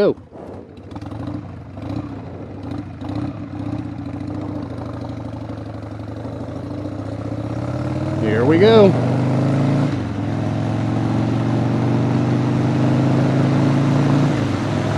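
A motorcycle engine rumbles steadily and revs up as the bike speeds along.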